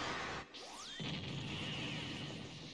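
A large explosion rumbles.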